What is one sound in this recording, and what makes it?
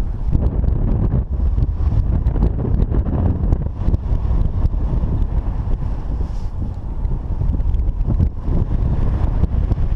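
Strong wind rushes and buffets loudly against a microphone in flight.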